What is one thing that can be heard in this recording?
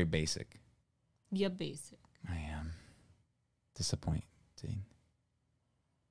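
A man speaks in short phrases into a close microphone.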